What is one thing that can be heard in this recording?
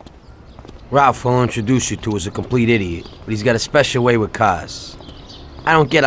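A young man speaks calmly outdoors, close by.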